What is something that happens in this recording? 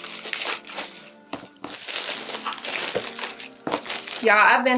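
Paper rustles as a box is unwrapped.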